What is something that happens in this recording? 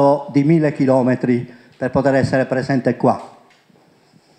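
A middle-aged man speaks with animation into a microphone, heard over a loudspeaker in a room.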